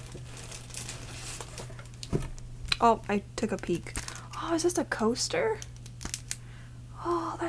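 A plastic packet crinkles in someone's hands.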